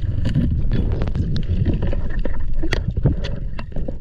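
Air bubbles burble up through the water.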